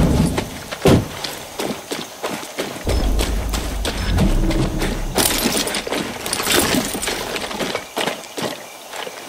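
Footsteps crunch on a gravel road.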